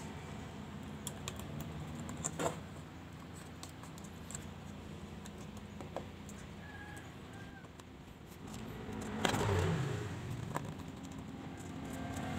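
Fingers press and click plastic parts of a phone into place.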